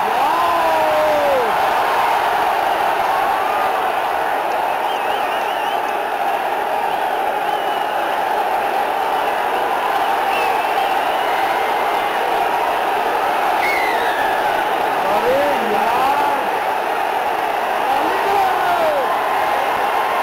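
People in a crowd whistle and call out with high voices.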